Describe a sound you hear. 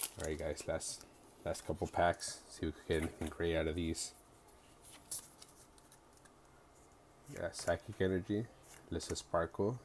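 Playing cards flick and shuffle between hands.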